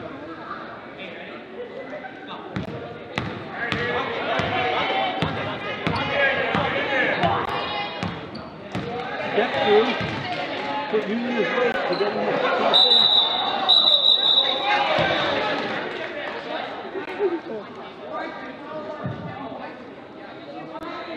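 A crowd of spectators murmurs and cheers in an echoing gym.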